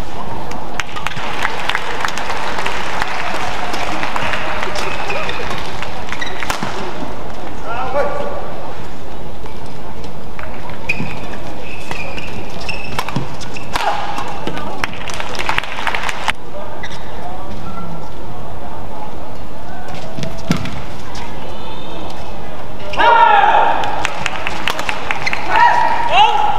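Rackets smack a shuttlecock back and forth in quick rallies.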